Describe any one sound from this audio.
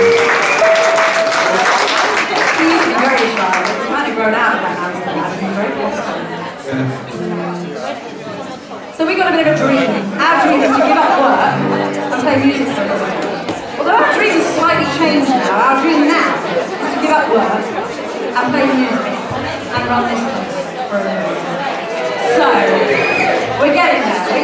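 A small band plays lively music.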